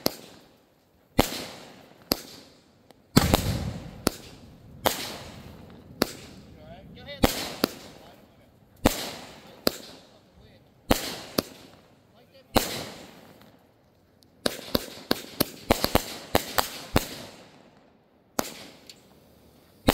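Fireworks shells burst with sharp bangs that echo across the open air.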